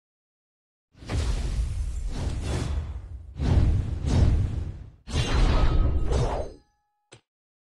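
Sword strikes and spell blasts clash loudly in a game battle.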